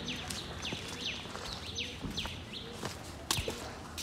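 A man's footsteps scuff on a paved path.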